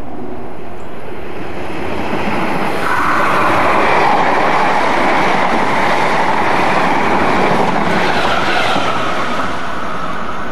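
A train approaches and rushes past with a loud roar, then fades.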